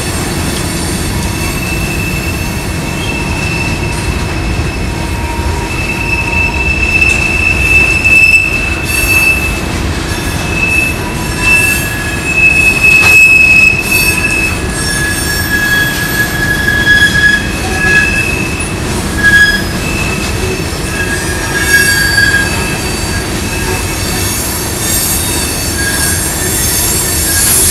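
Freight cars rumble and clatter past along the tracks.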